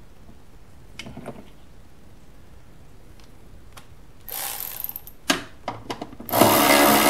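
Plastic parts click and knock under a hand.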